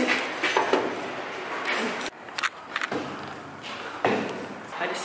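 Footsteps tap on stairs.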